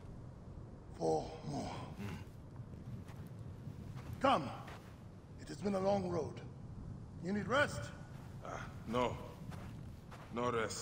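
A second man answers with animation.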